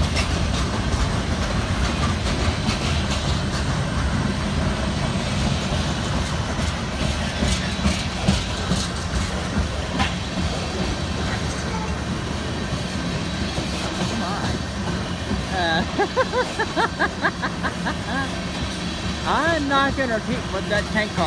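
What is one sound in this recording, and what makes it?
A freight train rumbles past close by.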